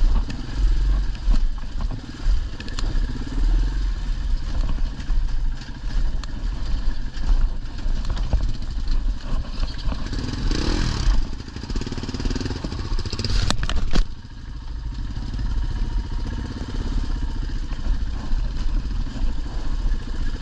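A motorcycle engine rumbles steadily at low speed.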